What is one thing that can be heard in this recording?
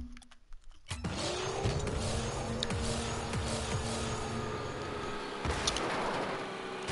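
A game car's rocket boost hisses loudly.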